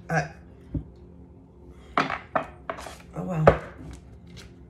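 Cards tap onto a table.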